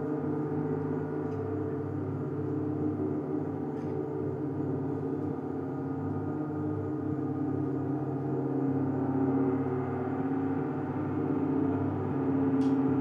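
Large metal gongs ring with a deep, steady, shimmering hum that swells and fades.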